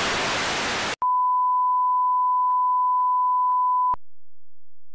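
A steady high test tone beeps.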